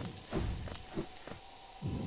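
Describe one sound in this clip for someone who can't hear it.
A small figure dashes with a rushing whoosh.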